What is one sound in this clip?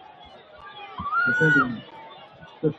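A referee's whistle blows once, short and sharp.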